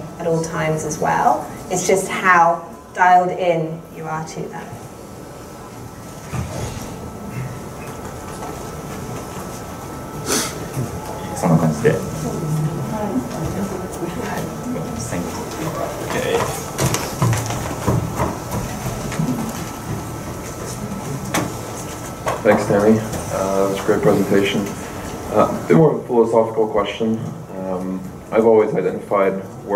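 A young man speaks calmly through a microphone in an echoing hall.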